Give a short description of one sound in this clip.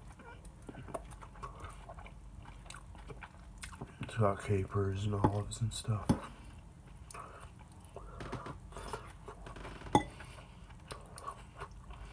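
A man chews food with wet mouth sounds.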